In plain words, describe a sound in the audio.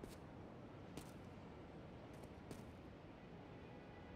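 Footsteps scuff briefly on a hard rooftop.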